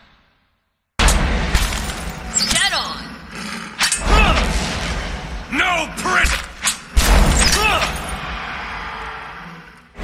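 Weapons clash and magic effects burst in a battle.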